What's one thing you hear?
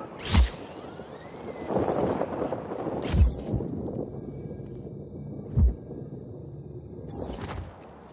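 Wind rushes past a parachute gliding through the air.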